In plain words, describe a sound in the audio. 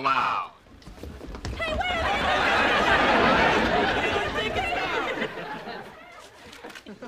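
A crowd shouts and cheers excitedly.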